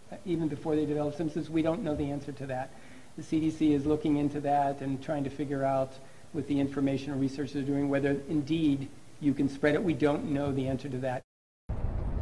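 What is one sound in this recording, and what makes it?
A middle-aged man speaks calmly into microphones.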